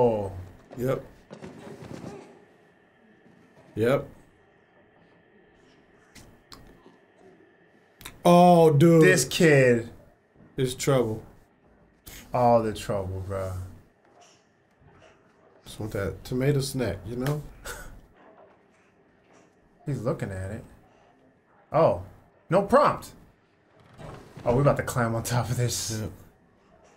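Two young men talk and laugh with animation, close to a microphone.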